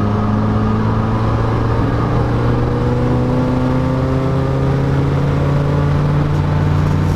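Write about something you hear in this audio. A car engine hums and rises steadily in pitch as the car speeds up.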